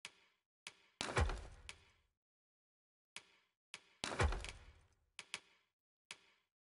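A heavier thud with a rumbling whoosh sounds when an item is selected.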